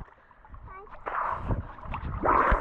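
A man speaks close by after surfacing.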